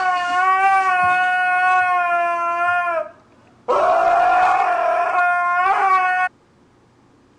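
A dog howls loudly with a long, wavering cry.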